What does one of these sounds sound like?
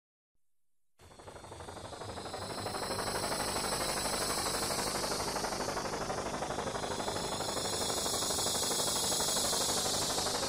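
The rotors of several Huey helicopters thump in flight and grow louder.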